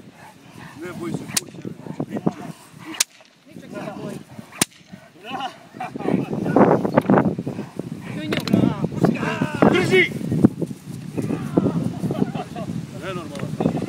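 A dog barks and growls fiercely close by.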